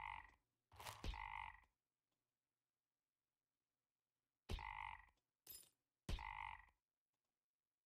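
Short electronic game chimes sound in quick bursts.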